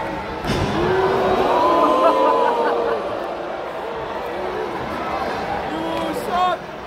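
A large crowd chants and cheers in an echoing arena.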